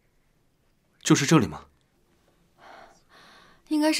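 A young woman speaks clearly and close by.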